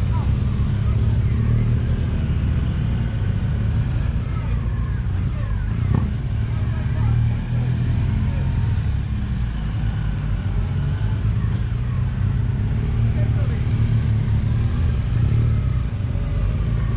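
Several motorcycles ride at low speed in the distance, their engines rising and falling.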